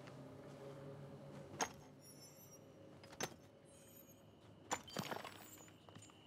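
A pickaxe strikes rock with sharp clinks.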